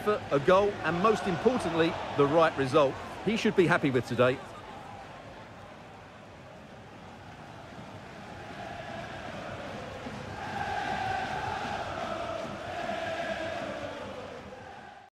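A large crowd cheers and roars in a stadium, swelling louder toward the end.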